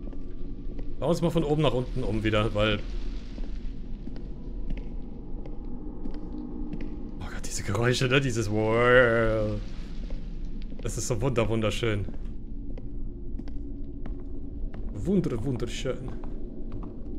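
A man talks with animation close to a microphone, in short bursts.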